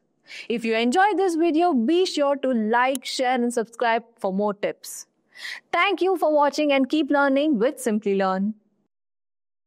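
A young woman speaks clearly and with animation into a close microphone.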